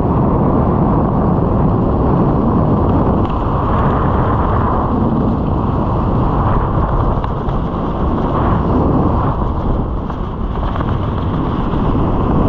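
Strong wind roars and buffets steadily past a microphone high in the air.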